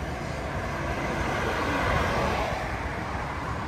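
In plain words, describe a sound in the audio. A car drives past on a city street.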